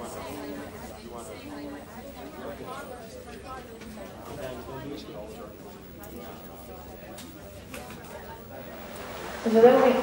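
Young people talk in hushed voices nearby.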